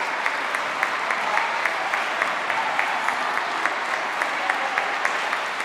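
A large crowd claps along in a steady rhythm in a big echoing hall.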